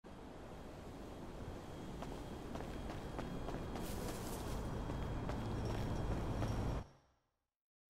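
Footsteps tap on a stone path.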